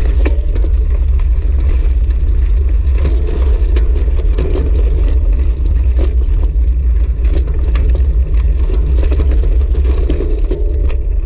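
Wind buffets the microphone while riding outdoors.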